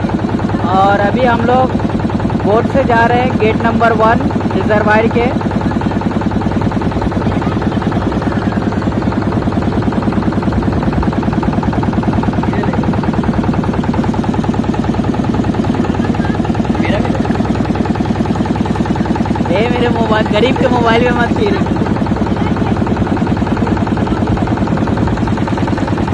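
A boat engine drones steadily and close.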